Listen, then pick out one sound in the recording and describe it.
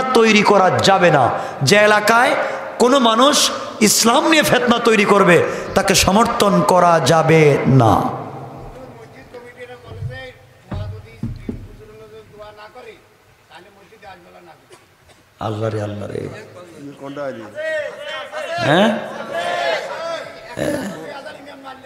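A young man preaches loudly and passionately through a microphone and loudspeakers, with echo.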